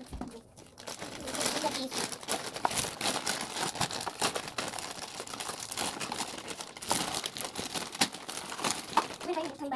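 Cardboard boxes and plastic wrappers rustle and crinkle close by.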